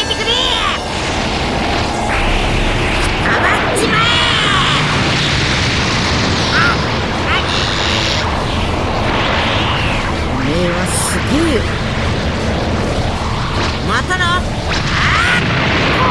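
An energy blast roars and rumbles loudly.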